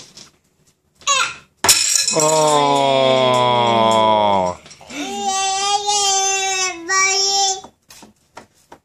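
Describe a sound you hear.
A toddler squeals loudly and babbles close by.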